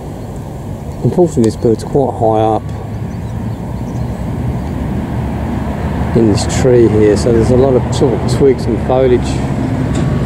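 A bird calls nearby with quick, rattling, warbling notes.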